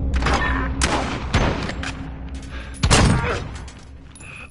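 Gunshots fire in rapid bursts with sharp cracks.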